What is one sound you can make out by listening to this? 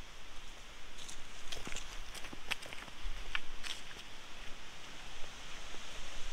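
Footsteps crunch on dry leaves and gravel, moving away.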